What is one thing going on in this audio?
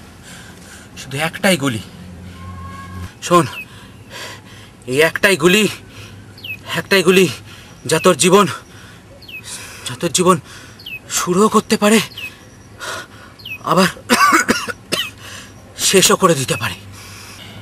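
A man speaks tensely and close by, in short bursts.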